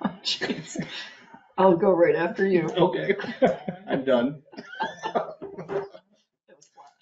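A woman talks and laughs over an online call.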